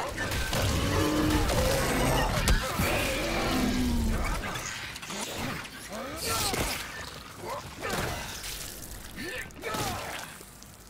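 Creatures snarl and shriek nearby.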